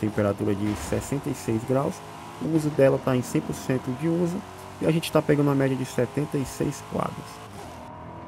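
A sports car engine roars and revs hard, shifting up through the gears.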